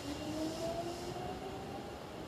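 Wheels squeal on the rails.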